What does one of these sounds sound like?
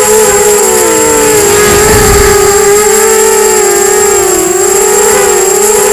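A small drone's propellers buzz close by with a high, wavering whine.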